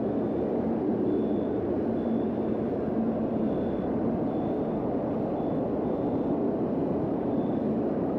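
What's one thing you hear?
Heavy rain pours steadily onto a paved street outdoors.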